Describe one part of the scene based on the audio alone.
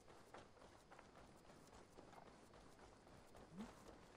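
Footsteps run over dirt.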